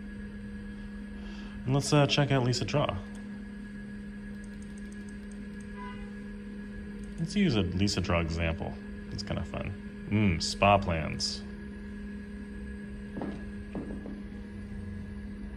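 An old computer hums steadily.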